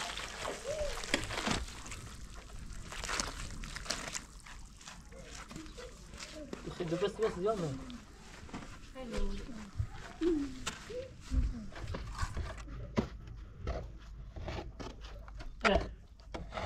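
A metal shovel scrapes and slaps wet cement in a basin.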